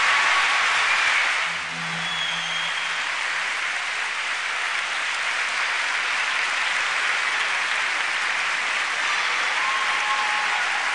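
A large crowd applauds and cheers in a big echoing arena.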